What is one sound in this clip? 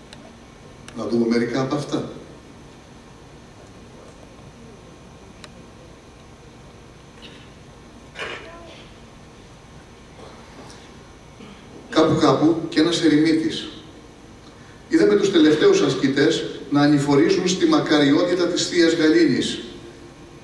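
A man speaks dramatically into a microphone in a large hall.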